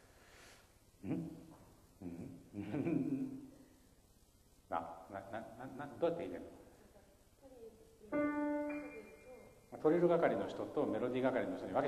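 Several hands play a grand piano in short bursts in a large, echoing hall.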